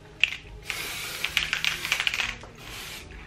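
An aerosol can hisses as it sprays.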